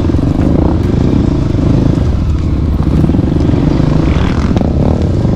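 A motorcycle engine rumbles loudly up close.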